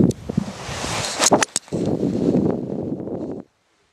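A golf club swings and strikes a ball with a sharp click.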